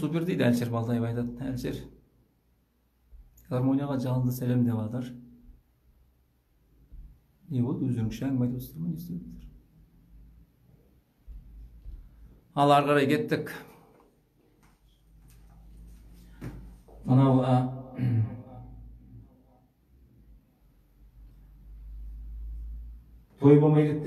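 A middle-aged man talks calmly, close by, in short bursts.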